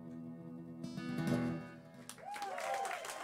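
A guitar chord rings out and fades.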